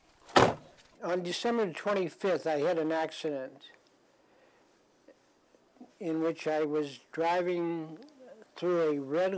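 An elderly man speaks calmly and close up into a microphone.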